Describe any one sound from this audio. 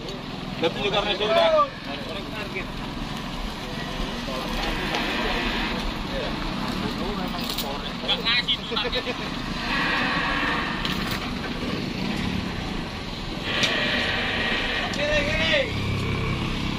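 Men talk outdoors in loud, animated voices.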